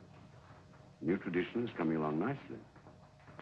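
A young man answers in a short reply.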